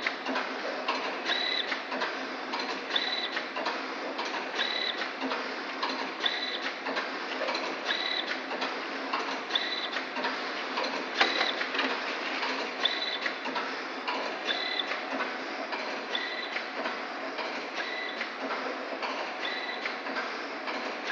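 Machine parts clack and knock rhythmically.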